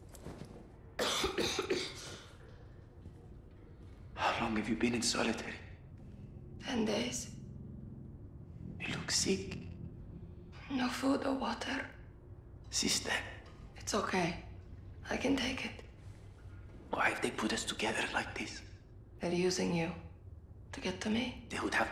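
A man speaks calmly and wearily, close by.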